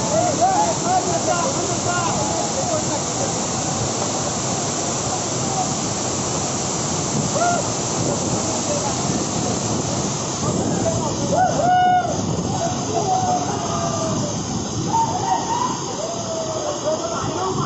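A waterfall roars steadily, with water rushing over rocks.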